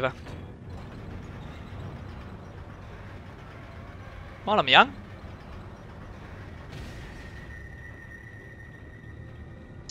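A metal lift rumbles and creaks as it moves.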